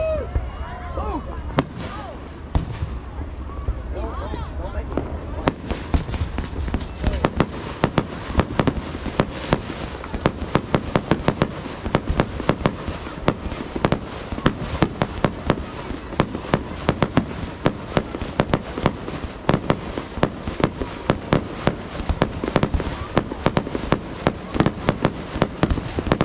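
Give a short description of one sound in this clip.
Fireworks crackle and bang in rapid bursts.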